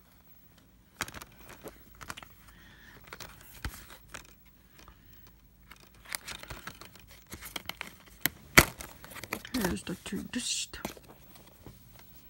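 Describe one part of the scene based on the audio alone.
A plastic case rattles and taps as it is handled.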